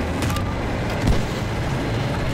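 A nearby explosion bursts loudly.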